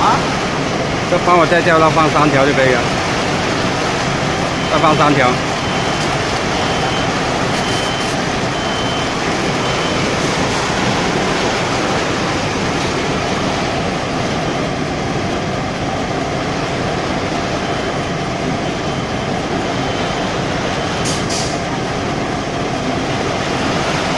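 Rolls rattle along a conveyor.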